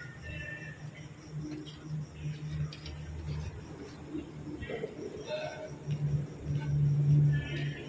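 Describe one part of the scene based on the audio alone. Corn husks rustle and crackle as they are peeled.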